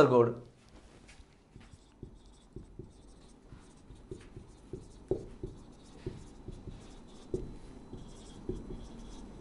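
A marker squeaks and taps as it writes on a whiteboard.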